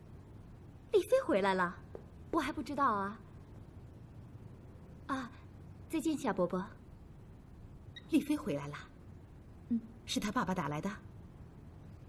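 Women talk calmly a short way off.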